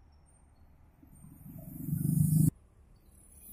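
A car drives up close and passes by.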